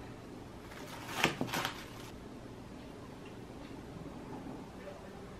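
Metal tongs clack and rustle while placing leafy greens on a plate.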